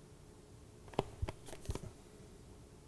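Playing cards click and slide on a table.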